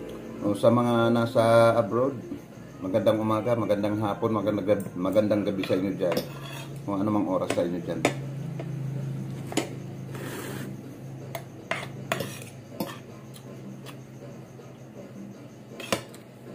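Cutlery clinks and scrapes against a plate.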